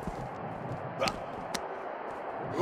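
Punches land on a body with sharp thuds.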